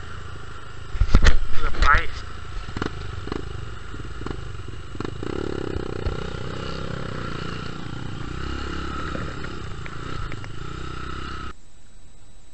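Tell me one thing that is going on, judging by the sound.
Knocks and bumps sound as a dirt bike rides over rough ground.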